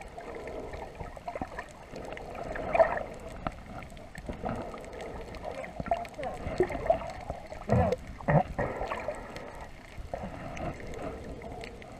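Water swishes and bubbles, heard muffled underwater.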